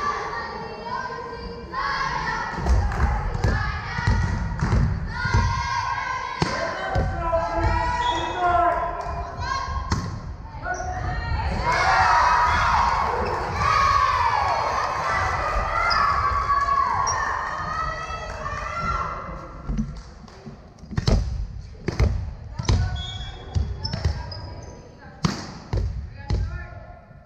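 Young girls call out to each other in an echoing hall.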